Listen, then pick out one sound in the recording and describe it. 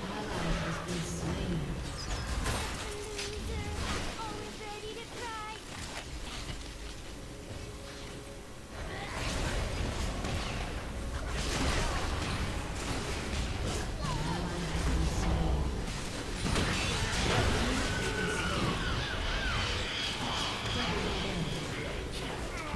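Magic blasts and hits crackle and whoosh in a busy fight.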